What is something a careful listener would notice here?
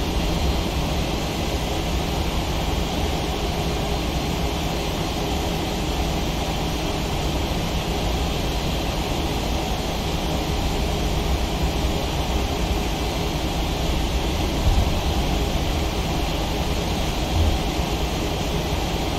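Jet engines roar steadily as an airliner rolls down a runway.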